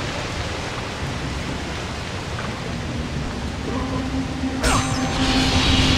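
Water pours and splashes steadily.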